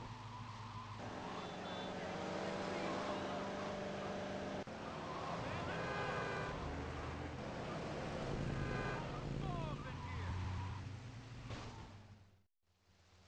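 A car engine roars and revs as a car speeds along.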